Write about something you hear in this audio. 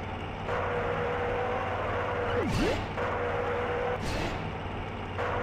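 A small kart engine buzzes at a steady pitch, briefly dipping and rising.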